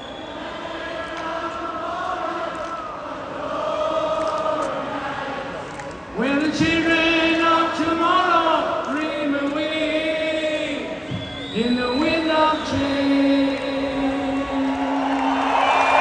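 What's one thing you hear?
A singer's voice rings out through loudspeakers in a large echoing arena.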